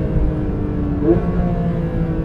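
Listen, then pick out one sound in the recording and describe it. A sports car engine blips sharply during a gear change.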